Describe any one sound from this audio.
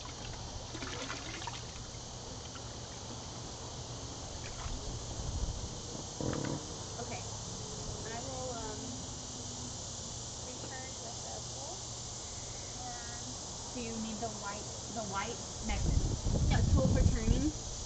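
Water splashes in a small pool.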